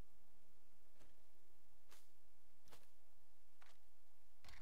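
Short interface clicks sound as items are moved around.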